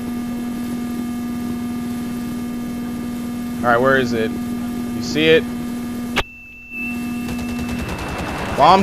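A helicopter's engine and rotor whir steadily.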